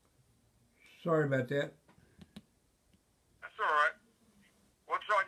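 An elderly man speaks calmly, close by, in short bursts.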